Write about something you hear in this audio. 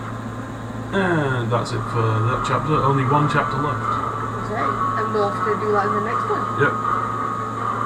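Two young men talk and react with animation close to a microphone.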